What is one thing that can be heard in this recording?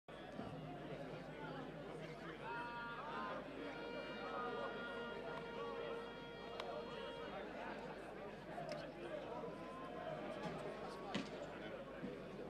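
A crowd claps rhythmically.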